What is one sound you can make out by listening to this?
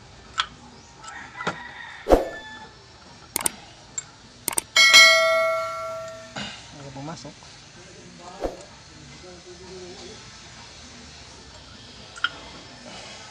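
Metal parts clink and knock sharply now and then.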